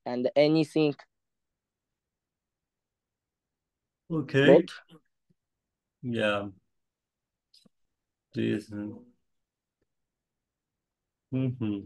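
A young man speaks calmly in short bursts through an online call, with pauses between.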